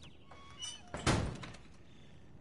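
A heavy metal door slams shut.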